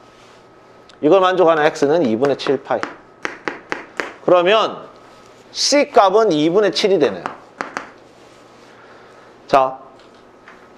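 A young man lectures calmly and with animation, close to a microphone.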